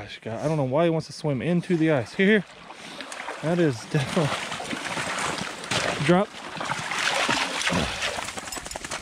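A dog swims and splashes through shallow water.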